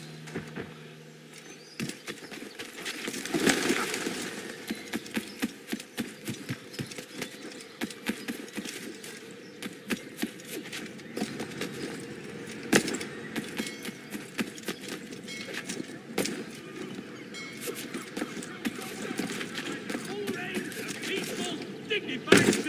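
Footsteps clatter quickly across wooden boards and roof tiles.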